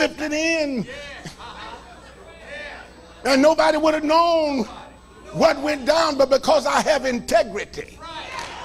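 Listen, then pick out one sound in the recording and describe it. An elderly man preaches fervently into a microphone, his voice rising and falling in a sung, drawn-out way.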